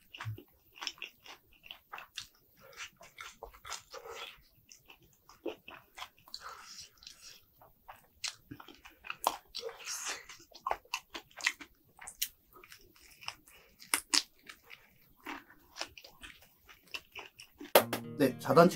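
A man chews crunchy fried food close to a microphone, with crisp crackling bites.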